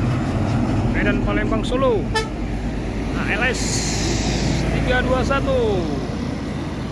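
A bus sounds a musical horn in short bursts of gliding notes.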